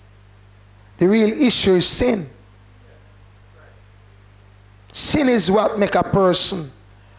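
A man preaches with emphasis into a microphone, in short bursts with pauses.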